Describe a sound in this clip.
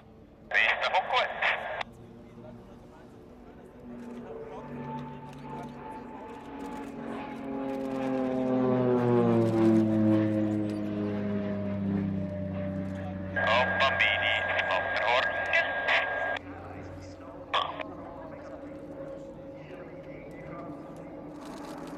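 A propeller plane's engine drones overhead, its pitch slowly falling as it passes.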